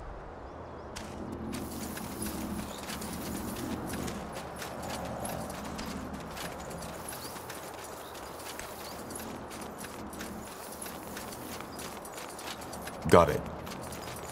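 Footsteps patter steadily on dirt and stone.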